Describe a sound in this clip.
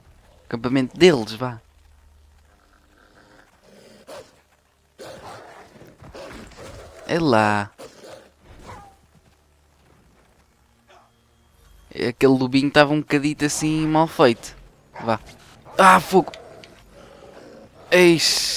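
A wolf snarls and growls fiercely.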